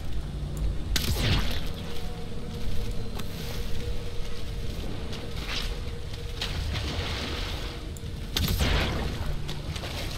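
A magical blast bursts with a loud rushing whoosh.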